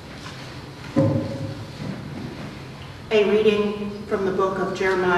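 A woman reads aloud through a microphone in a large echoing hall.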